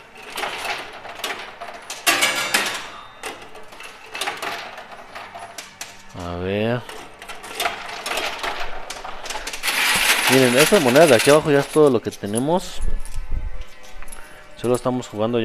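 Coins clink and clatter as a pusher shelf slides them along.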